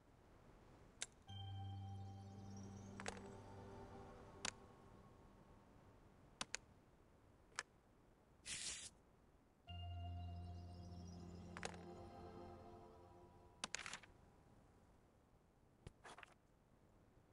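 Short sharp clicks sound now and then.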